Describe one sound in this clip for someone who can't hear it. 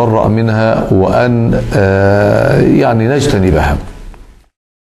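An elderly man speaks calmly and steadily into a microphone, close by.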